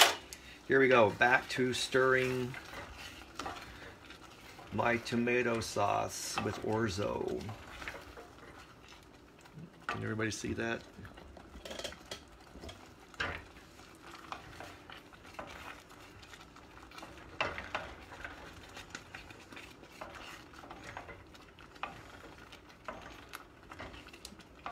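A wooden spoon stirs and scrapes through thick sauce in a metal pot.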